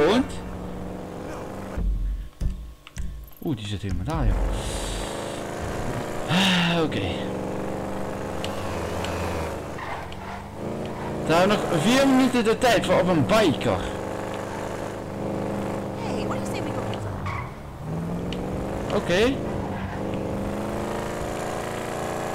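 A car engine hums steadily and revs as the car drives.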